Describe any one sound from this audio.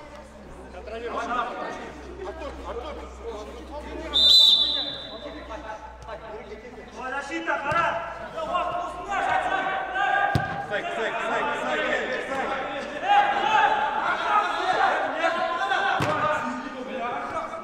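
Young men shout to each other across a large echoing indoor pitch.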